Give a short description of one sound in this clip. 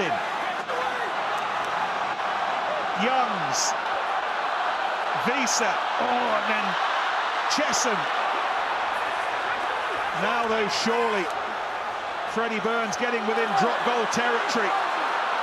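A large crowd murmurs and cheers steadily in an open stadium.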